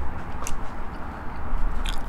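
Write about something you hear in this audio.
A man chews food.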